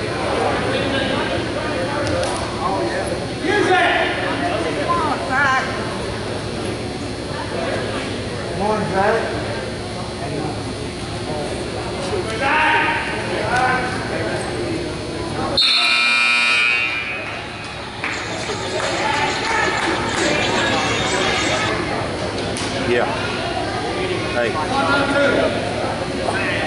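A crowd of spectators shouts and cheers in a large echoing gym.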